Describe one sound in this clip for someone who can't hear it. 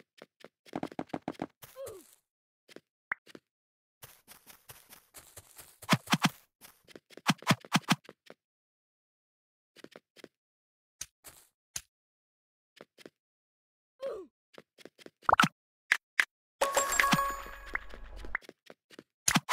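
Blocks clack as they are placed.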